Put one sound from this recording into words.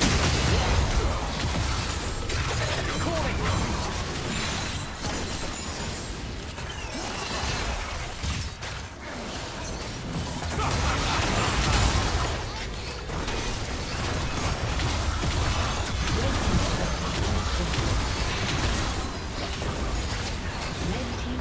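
Game spell effects crackle and boom in a busy fight.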